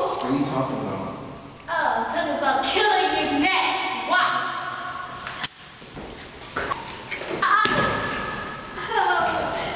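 Young men shout and argue close by.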